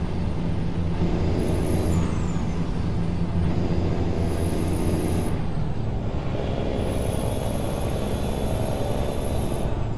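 Tyres roll over the road with a steady hum.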